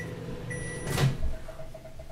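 A microwave door clicks open.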